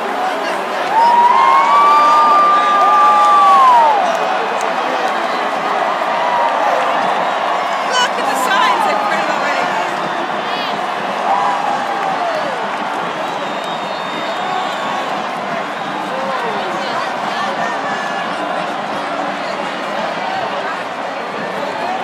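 A huge stadium crowd cheers and roars throughout, outdoors.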